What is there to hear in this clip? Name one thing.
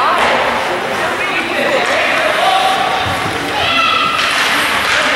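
Ice skates scrape and swish across an ice rink.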